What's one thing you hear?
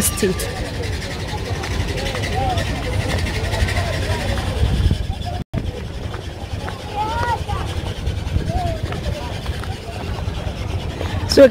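A crowd of men and women chatter all around outdoors.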